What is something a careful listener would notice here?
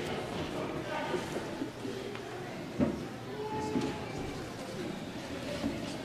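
A piano plays softly in a large echoing hall.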